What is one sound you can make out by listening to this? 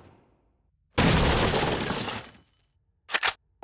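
A wooden crate smashes apart with a loud crack.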